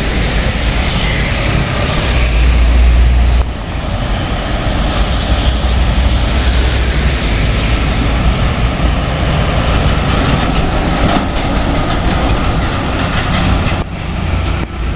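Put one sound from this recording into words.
Heavy trucks rumble past on a busy road.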